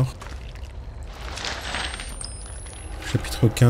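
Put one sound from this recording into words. Paper rustles as a sheet is picked up and unfolded.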